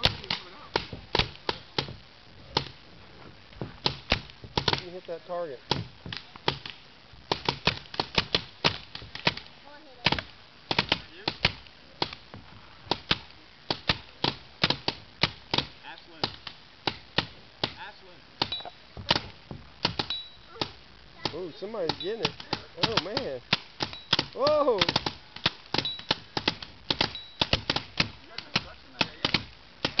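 Paintball guns fire in rapid, popping shots close by, outdoors.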